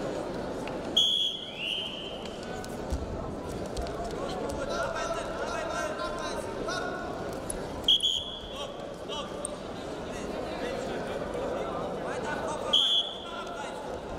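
A referee's whistle blows sharply a few times.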